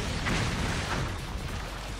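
Water splashes and rushes steadily.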